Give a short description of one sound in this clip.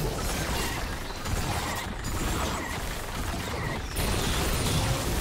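Magic spells whoosh and crackle in a video game fight.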